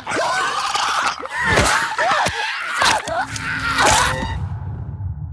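A creature snarls and shrieks as it attacks.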